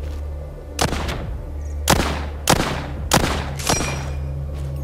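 Single rifle shots crack one after another.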